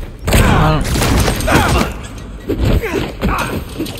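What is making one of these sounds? A body crashes onto a hard floor.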